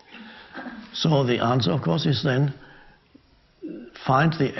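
A middle-aged man speaks calmly and thoughtfully, close to a microphone.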